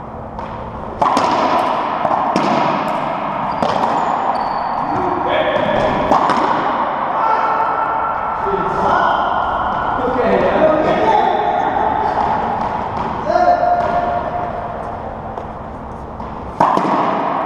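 Racquetball shots crack off racquets and walls in an echoing court.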